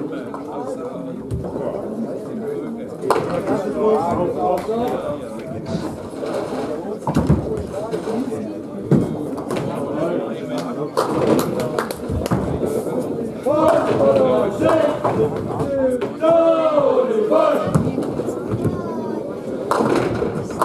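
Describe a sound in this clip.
A bowling ball rumbles down a lane.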